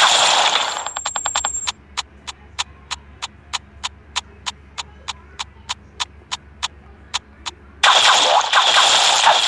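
Rapid cartoon gunshots fire in quick bursts.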